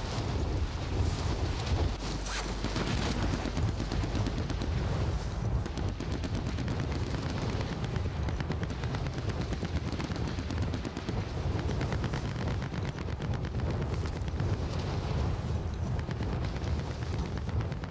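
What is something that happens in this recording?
Wind rushes steadily past during a parachute descent.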